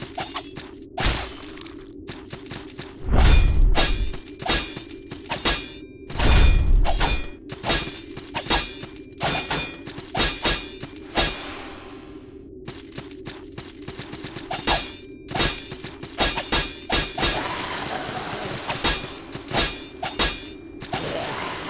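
Sword blows clash and slash in quick bursts.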